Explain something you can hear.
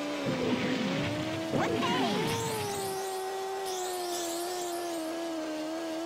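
A game kart engine hums steadily.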